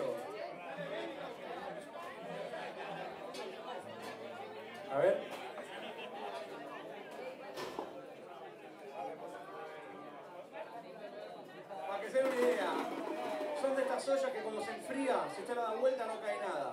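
A bass guitar plays.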